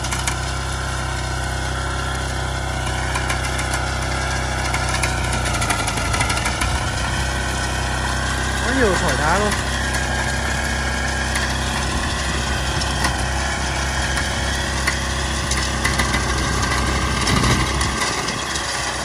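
Tiller blades churn and scrape through dry soil.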